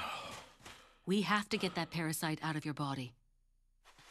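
A young woman speaks calmly and softly, close by.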